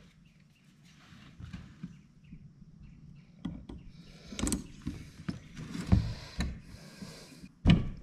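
Pliers grip and scrape on metal.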